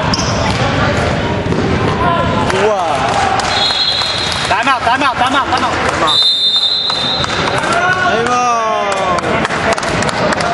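Men shout and call out in a large echoing gym.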